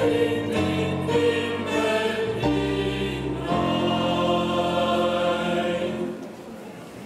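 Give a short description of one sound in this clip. A choir sings outdoors.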